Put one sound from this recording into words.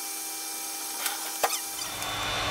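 Small plastic and metal parts click sharply as a tablet panel is pried open.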